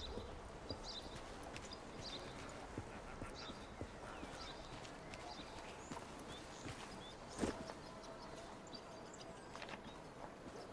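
Soft footsteps patter on grass and stone.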